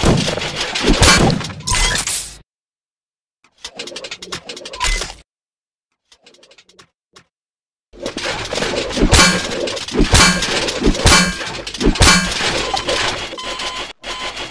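Blades slash and clang in a fight.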